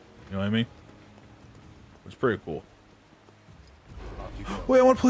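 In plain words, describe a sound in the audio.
A young man speaks in short bursts into a microphone.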